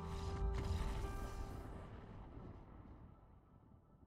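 A fiery explosion booms with a ringing tone and slowly fades away.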